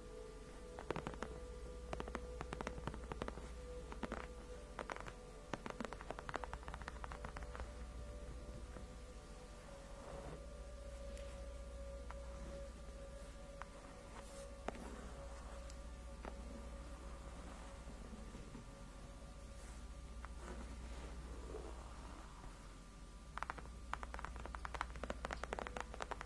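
Fingernails tap quickly and sharply on hard plastic, close up.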